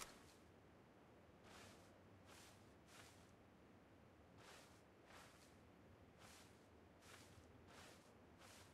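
Grass rustles as someone crawls through it.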